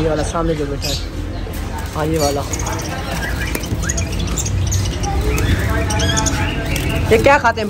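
A wire cage door rattles.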